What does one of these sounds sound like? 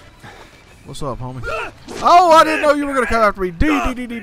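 A young man screams and yells loudly into a microphone.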